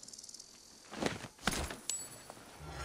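A sharp stab strikes a body.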